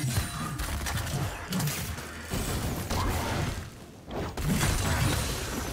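Magic blasts and weapon hits clash in a fast video game fight.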